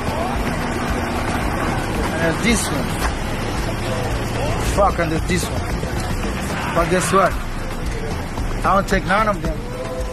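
A man raps rhythmically over music.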